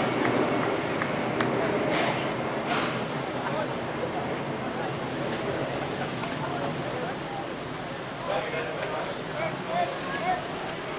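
Men talk and argue at a distance outdoors.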